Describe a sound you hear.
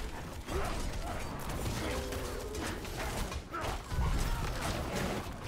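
Fighting clashes and magic blasts crackle in a game.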